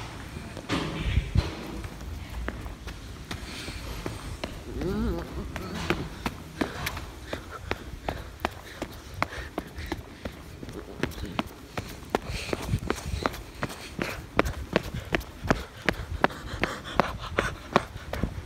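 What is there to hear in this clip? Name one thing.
Footsteps tap steadily on concrete.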